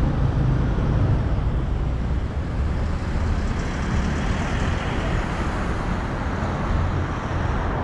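A truck rumbles past.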